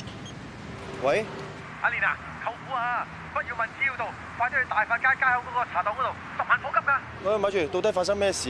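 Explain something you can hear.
A young man talks on a phone.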